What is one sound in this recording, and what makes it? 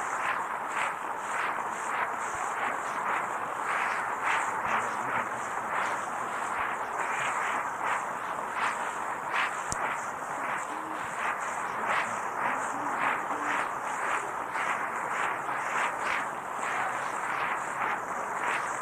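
A man gives a speech loudly and forcefully into a microphone, heard through a muffled, hissy old tape recording.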